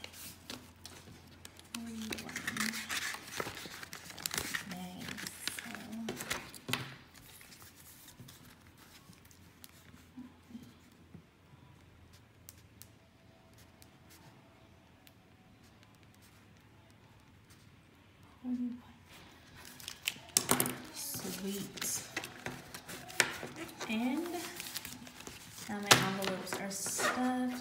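Paper money rustles and crinkles as bills are handled.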